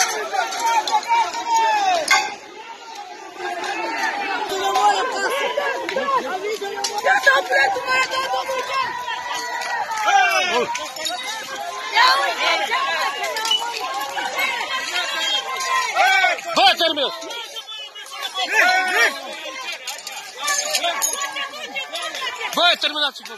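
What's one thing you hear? A crowd of men and women shout and scream outdoors.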